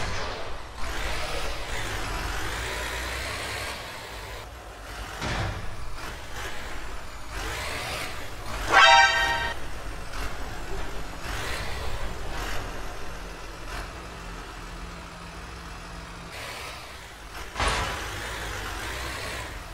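A truck engine rumbles as it drives along a road.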